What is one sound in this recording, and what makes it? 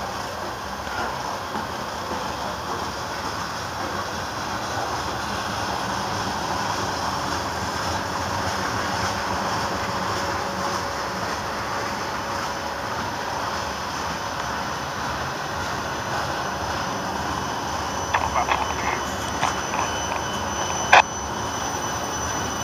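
A long freight train rumbles steadily past on the tracks nearby.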